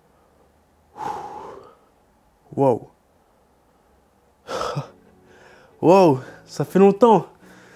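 A man speaks slowly and close to a microphone, with pauses.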